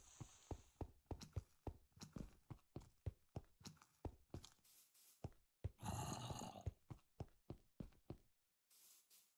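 Footsteps crunch steadily on stone and gravel.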